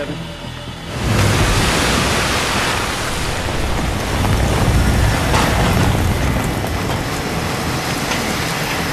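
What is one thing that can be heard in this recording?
Wind and waves roar loudly outdoors.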